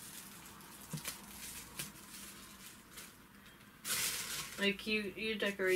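Wrapping paper rustles and crinkles as a gift is unwrapped.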